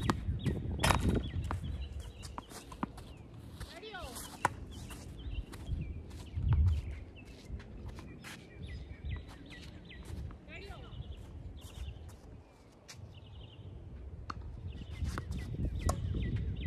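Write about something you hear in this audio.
A tennis ball is struck back and forth with sharp pops of rackets outdoors.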